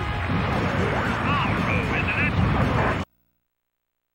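Loud video game battle sounds play.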